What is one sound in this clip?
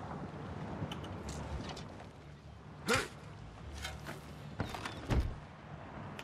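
A shovel digs into loose dirt with a few scraping thuds.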